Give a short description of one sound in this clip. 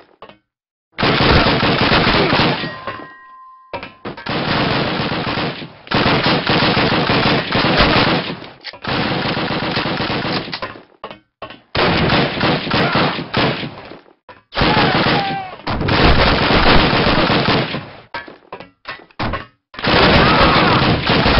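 A submachine gun fires rapid bursts of gunshots, echoing in a confined space.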